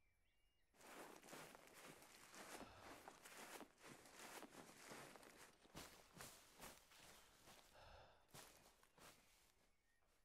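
Footsteps crunch and rustle quickly through dry grass and brush.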